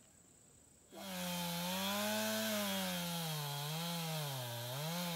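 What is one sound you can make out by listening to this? A chainsaw runs loudly, its engine revving up and down.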